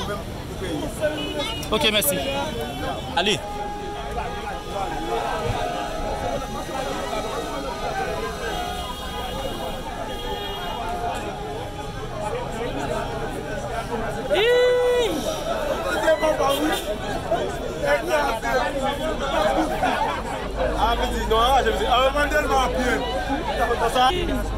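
A crowd of people talk in the background outdoors.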